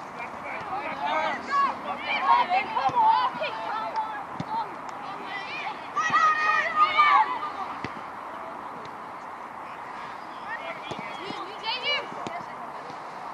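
Boys shout to each other across an open pitch outdoors.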